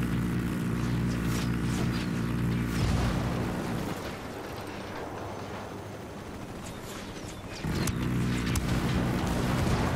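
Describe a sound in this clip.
A missile streaks off with a whoosh.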